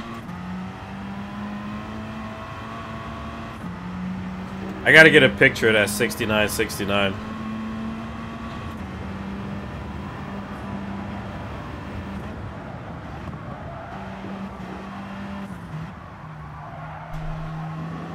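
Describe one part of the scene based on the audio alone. A race car engine drones steadily, shifting pitch as it drives.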